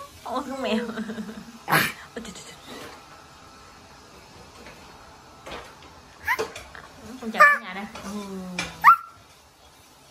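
A little girl talks close by, happily and with animation.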